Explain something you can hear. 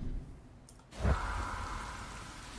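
A heavy chest creaks open.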